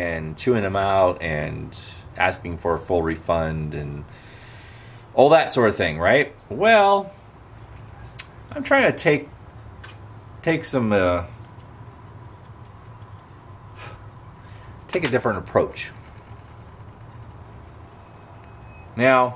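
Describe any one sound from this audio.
A middle-aged man talks calmly and close by, in short bursts with pauses.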